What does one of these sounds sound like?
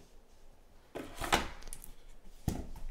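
A cardboard lid scrapes off a box.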